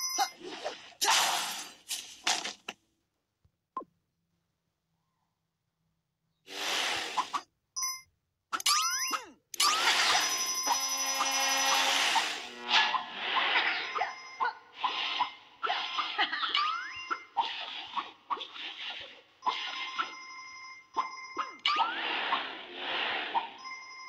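Bright chimes ring quickly, over and over, as coins are picked up in a game.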